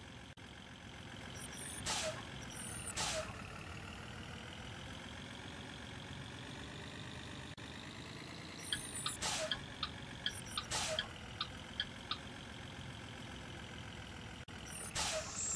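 A bus engine hums and drones as the bus drives along.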